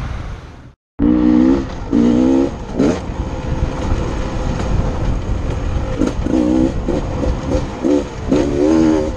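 A dirt bike engine revs and whines over rough ground.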